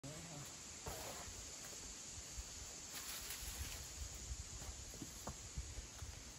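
A climber's hands and shoes scuff and tap against rock.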